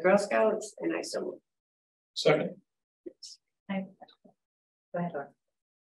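A woman speaks in short, broken phrases over an online call.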